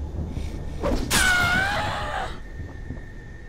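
A zombie lets out a loud, rasping groan.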